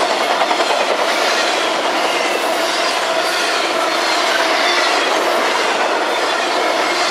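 A long freight train rumbles and clatters past close by.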